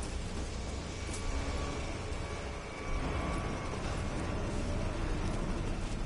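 A low machine hum drones steadily.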